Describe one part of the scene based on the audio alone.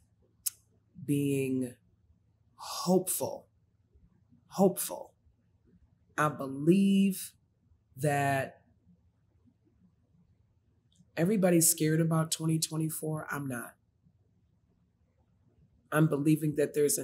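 A middle-aged woman speaks with animation into a close microphone, in short bursts with pauses.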